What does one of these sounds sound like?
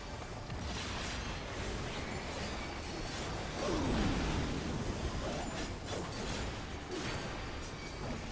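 Spell effects burst and crackle in a game battle.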